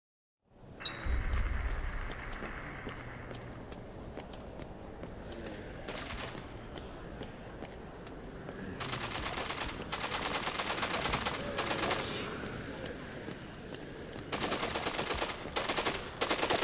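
Footsteps run quickly over pavement.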